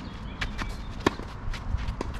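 A tennis racket strikes a ball with a sharp pop.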